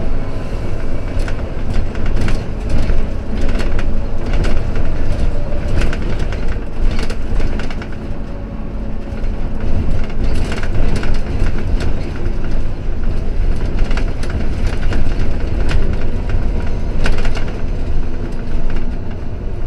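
A vehicle engine rumbles steadily from inside as it drives along.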